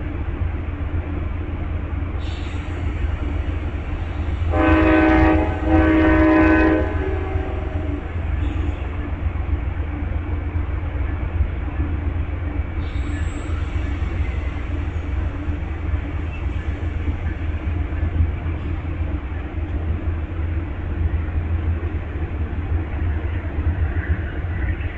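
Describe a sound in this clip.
A passenger train rolls slowly past with a low, steady rumble.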